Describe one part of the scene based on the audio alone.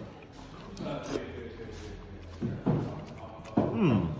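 A man slurps food noisily.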